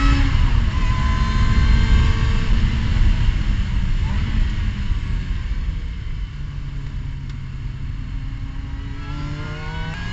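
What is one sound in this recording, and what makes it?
A race car engine winds down in pitch as the car slows for a corner, heard from inside the cockpit.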